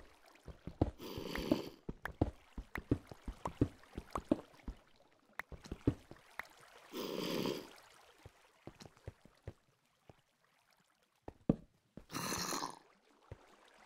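Stone blocks crumble and break with a crunch.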